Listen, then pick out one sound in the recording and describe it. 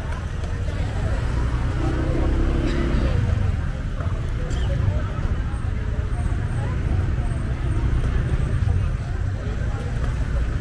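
People chatter and murmur nearby outdoors.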